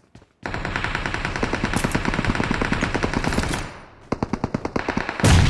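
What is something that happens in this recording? A rifle fires in rapid bursts of shots nearby.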